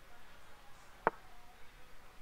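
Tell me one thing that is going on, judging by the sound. A chess piece lands with a short wooden click.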